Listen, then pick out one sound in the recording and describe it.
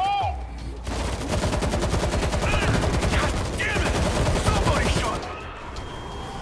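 Rapid rifle gunfire rattles close by.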